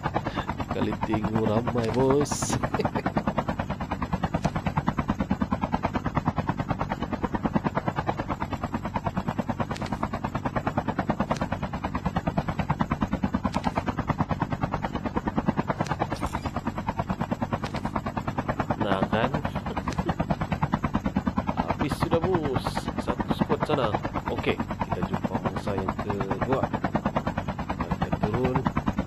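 A helicopter's rotor thumps steadily and quickly.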